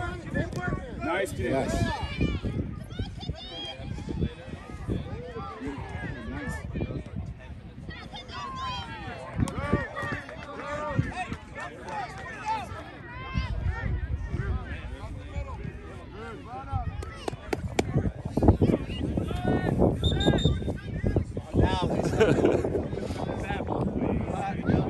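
Adults and children shout and cheer from the sidelines outdoors.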